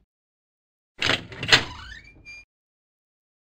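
A double door creaks open.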